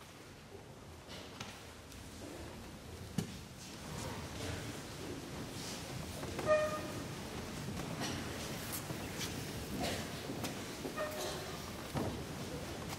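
An elderly man speaks quietly into a microphone in a large echoing hall.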